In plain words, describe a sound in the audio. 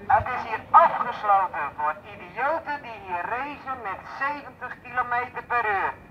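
A middle-aged woman speaks loudly through a megaphone outdoors.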